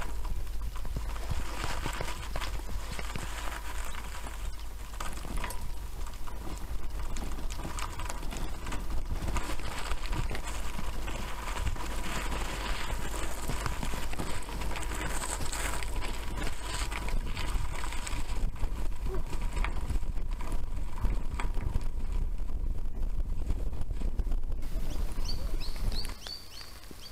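Wind rumbles and buffets against the microphone.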